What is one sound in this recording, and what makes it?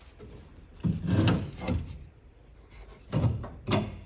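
A metal trim piece clicks as it is pulled loose.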